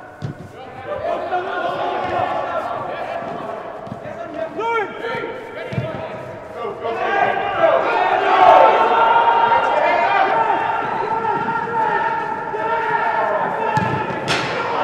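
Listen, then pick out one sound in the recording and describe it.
A football thuds when kicked.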